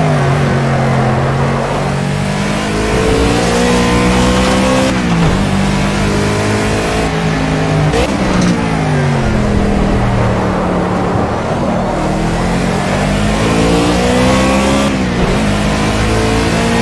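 A racing car engine roars loudly, revving up through the gears and dropping in pitch at each shift.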